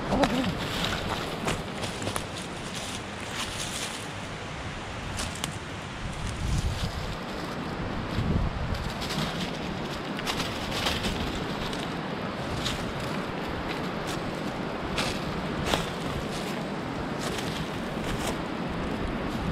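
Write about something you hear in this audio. Twigs snap and crackle underfoot.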